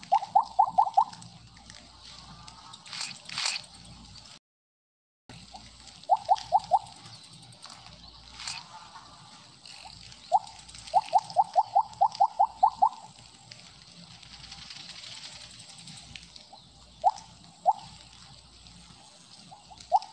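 Short electronic blips ring out in quick runs as a game snake gobbles up pellets.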